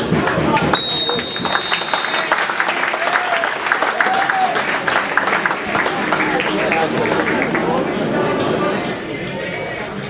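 A small crowd applauds outdoors.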